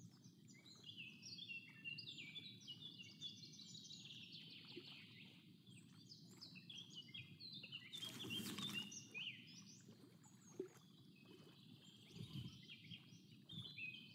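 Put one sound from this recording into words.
Water laps gently against the shore.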